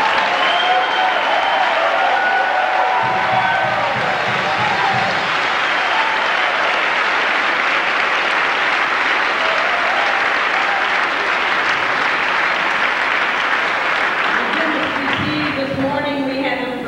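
A large crowd claps and cheers loudly in an echoing hall.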